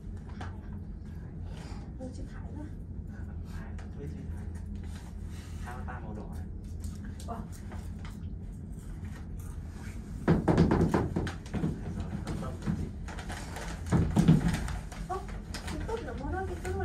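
A cable car cabin hums and rumbles steadily as it glides along its cable.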